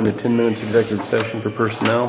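Paper rustles as a man handles a sheet.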